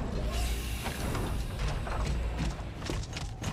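A heavy armored vehicle rumbles with a deep engine roar.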